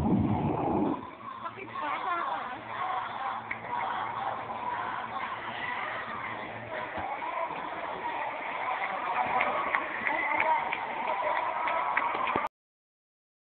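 A crowd of young people chatters and calls out nearby.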